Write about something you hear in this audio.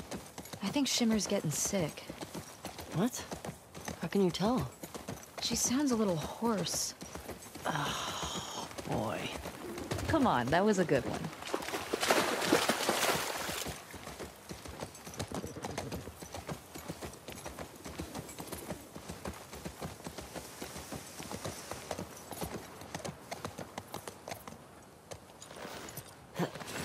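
A horse gallops with hooves thudding on grass.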